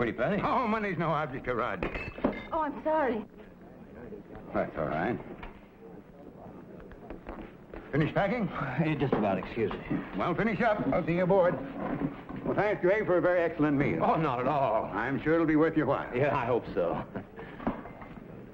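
A middle-aged man and an elderly man talk calmly nearby.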